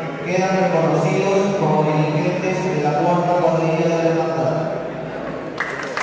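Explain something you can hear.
A group of men sing a slow hymn together in an echoing hall.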